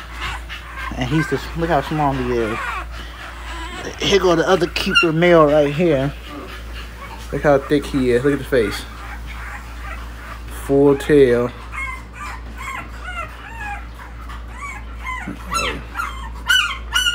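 A newborn puppy squeaks and whimpers close by.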